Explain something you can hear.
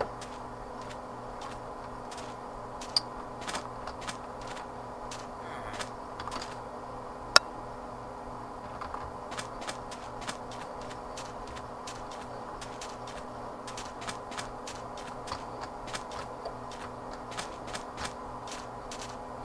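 Footsteps crunch softly on sand at a steady walking pace.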